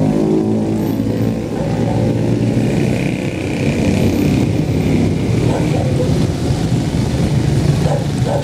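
A small truck engine hums as it drives slowly past.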